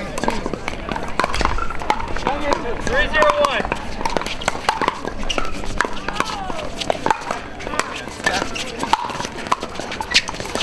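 Paddles pop against plastic balls in sharp, repeated knocks.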